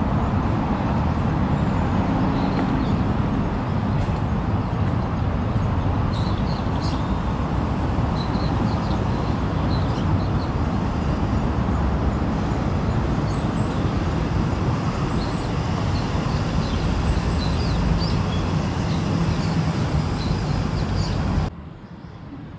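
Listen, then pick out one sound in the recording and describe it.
Wind blows across a microphone outdoors and rustles trees.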